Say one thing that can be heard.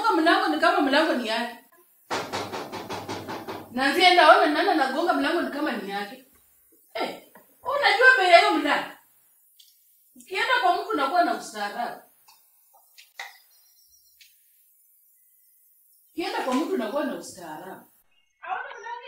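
A young woman calls out nearby.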